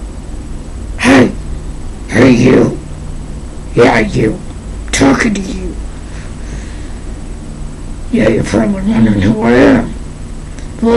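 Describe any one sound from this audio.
A young man speaks close to a microphone in short, muffled bursts.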